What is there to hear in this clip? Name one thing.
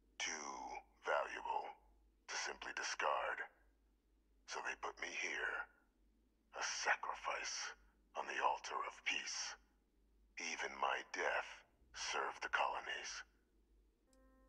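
A middle-aged man speaks calmly and thoughtfully, close up.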